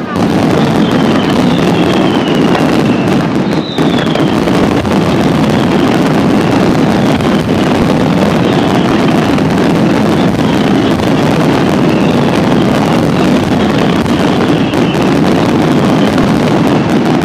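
Fireworks whistle as they shoot up.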